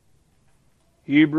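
A middle-aged man begins speaking loudly into a microphone.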